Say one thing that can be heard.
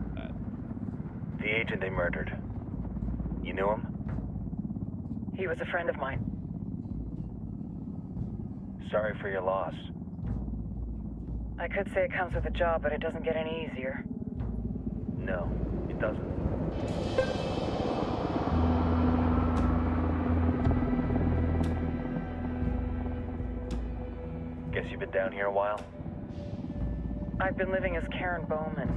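A helicopter's rotor drones steadily nearby.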